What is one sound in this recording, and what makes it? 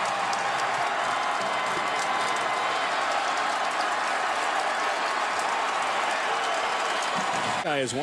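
A huge stadium crowd roars and cheers loudly.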